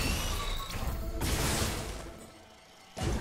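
Electric energy crackles and zaps loudly.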